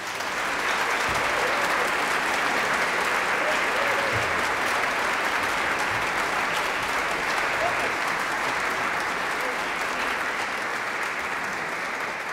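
An orchestra plays strings along with the choir.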